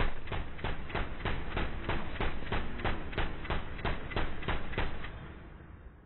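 An automatic gun fires in rapid bursts.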